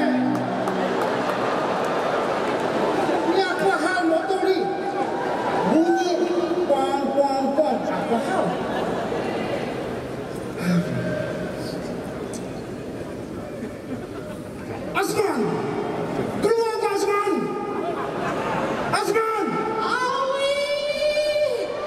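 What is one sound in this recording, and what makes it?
A crowd cheers and chatters loudly in a large hall.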